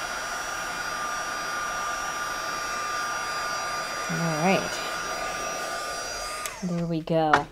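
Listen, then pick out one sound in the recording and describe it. A heat tool blows air with a steady whirring hum, then cuts off.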